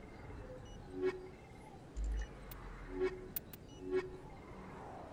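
Electronic menu blips sound as options are selected.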